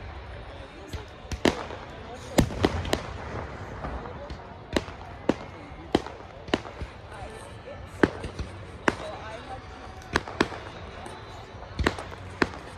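Fireworks burst and bang far off in the night sky.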